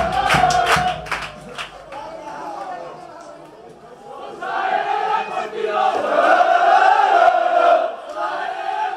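A crowd of fans claps and cheers outdoors.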